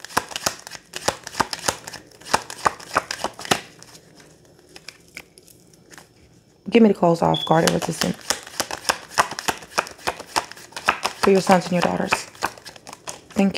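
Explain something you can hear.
Cards riffle and slap as they are shuffled close by.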